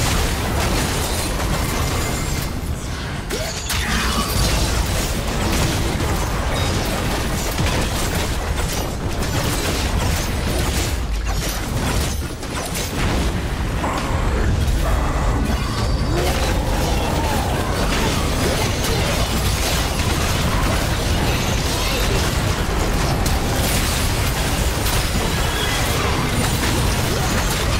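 Magic blasts crackle and explode in a fast-paced battle.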